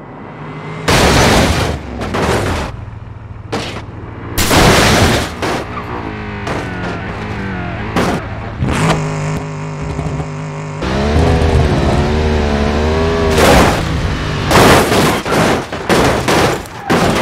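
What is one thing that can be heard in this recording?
A car crashes with loud metal crunching.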